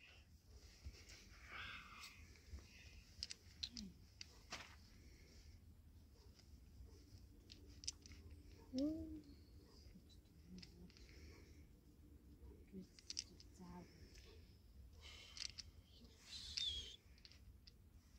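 Small wooden pieces tap and slide softly on a cloth.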